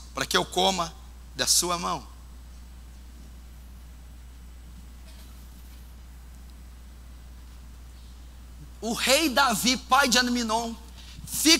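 A man speaks with animation into a microphone, with a pause in between.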